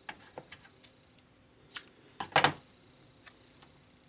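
Scissors snip through tape.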